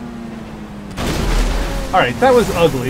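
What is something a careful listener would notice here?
A car splashes into shallow water.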